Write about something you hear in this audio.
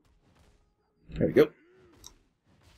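A sword slash lands with a heavy impact.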